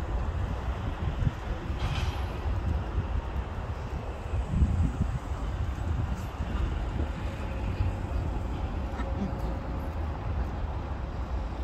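A goose plucks and tears at grass close by.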